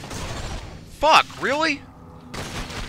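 A futuristic gun fires with sharp, sweeping zaps.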